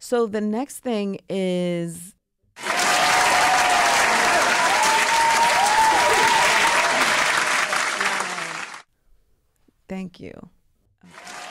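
A young woman speaks into a close microphone with animation.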